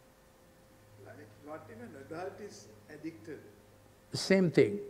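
An elderly man speaks calmly through a microphone in a large hall.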